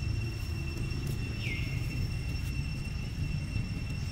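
Dry leaves rustle under a small monkey's feet.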